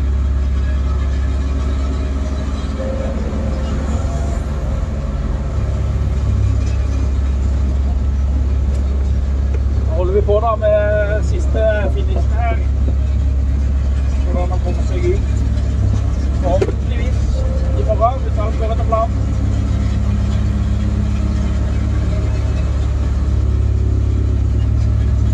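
A heavy diesel engine hums steadily close by.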